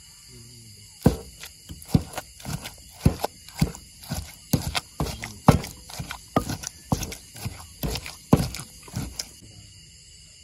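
A wooden pestle pounds rhythmically in a clay mortar.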